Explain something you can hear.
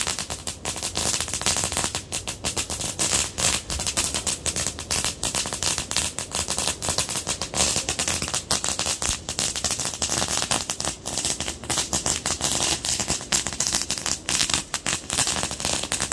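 A firework fountain hisses and crackles steadily.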